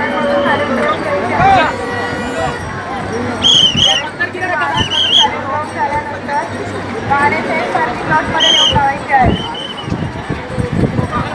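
A crowd of young men shouts and chatters outdoors close by.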